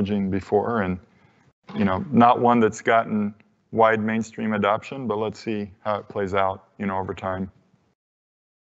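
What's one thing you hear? A middle-aged man speaks calmly through a microphone in a large hall.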